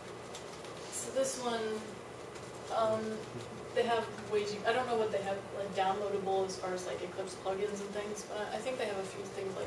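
A young woman speaks with animation in an echoing room, heard from a distance.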